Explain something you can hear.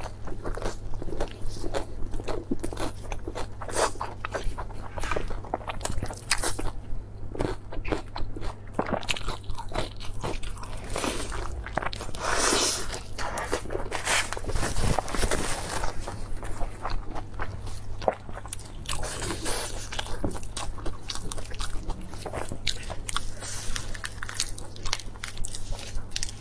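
Crisp lettuce leaves rustle and crunch as they are wrapped.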